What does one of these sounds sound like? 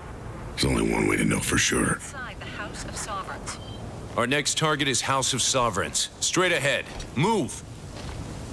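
A man speaks in a low, gruff voice.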